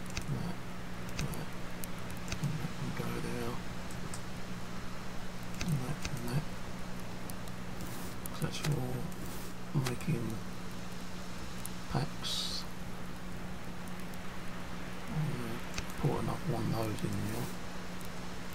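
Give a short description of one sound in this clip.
A man talks casually into a microphone, in short bursts.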